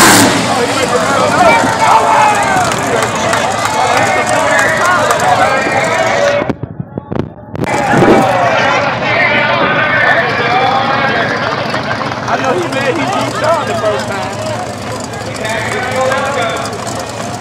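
A large crowd cheers and shouts nearby, outdoors.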